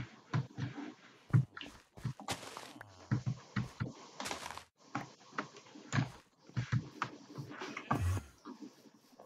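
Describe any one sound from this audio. Plants snap and crunch as they are broken in quick taps.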